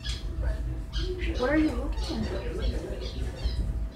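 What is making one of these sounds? A cat scratches at a wall with its claws.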